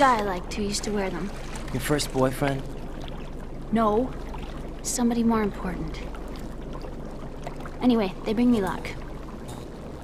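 A young woman speaks softly and wistfully.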